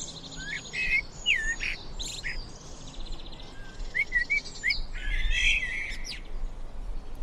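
A blackbird sings clear, fluting phrases close by.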